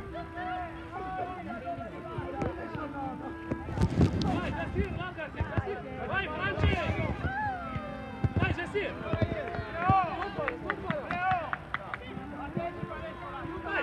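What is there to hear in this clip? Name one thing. Young boys shout and call out across an open outdoor field.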